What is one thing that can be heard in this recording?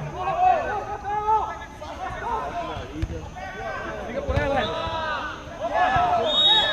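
Men shout and call to each other across an outdoor pitch.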